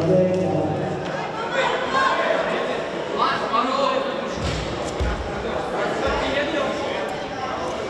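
Bare feet pad across a judo mat.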